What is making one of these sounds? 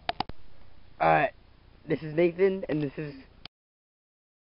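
A boy talks close by.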